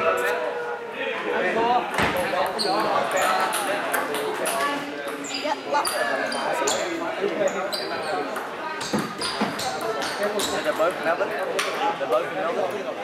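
Table tennis balls click against paddles and bounce on tables.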